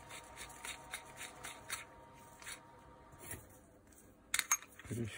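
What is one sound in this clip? Small metal parts clink and tap against each other.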